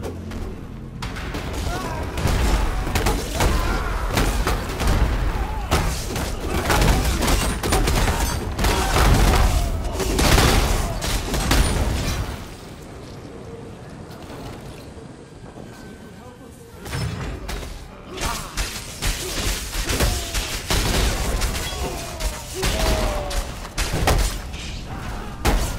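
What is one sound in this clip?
Spells crackle and burst in rapid bursts of a fierce fight.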